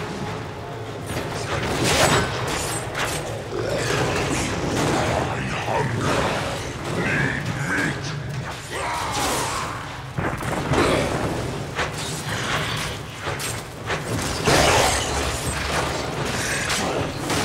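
Swords clash and strike against a monster in quick bursts.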